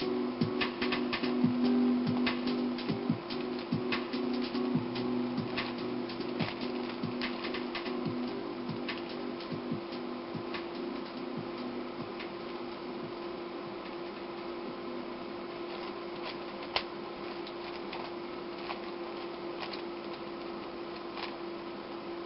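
A puzzle cube clicks and clatters as hands turn it quickly.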